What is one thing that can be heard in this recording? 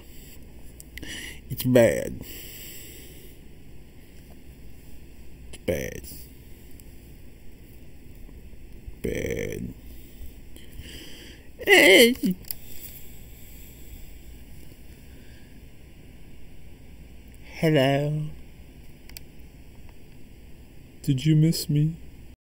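A man speaks close to the microphone in short bursts, with pauses.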